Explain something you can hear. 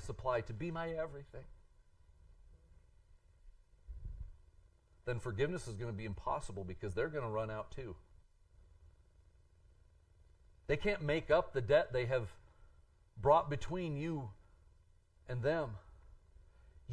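A middle-aged man speaks with animation through a microphone, with long pauses.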